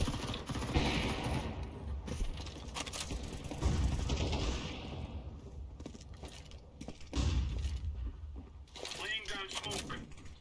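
Footsteps thud across a wooden floor indoors.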